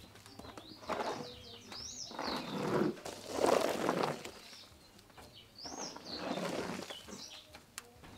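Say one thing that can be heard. A shovel scrapes across a dirt floor.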